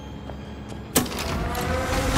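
A button clicks sharply.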